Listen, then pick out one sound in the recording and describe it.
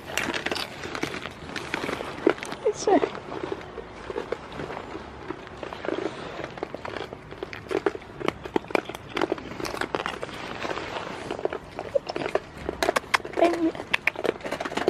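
Goats nibble and chew food from a hand.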